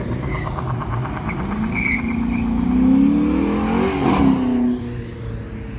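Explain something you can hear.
An engine revs loudly as a car speeds by.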